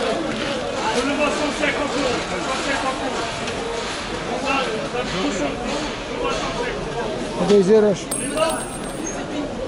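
Several men and women chatter close by in a lively crowd.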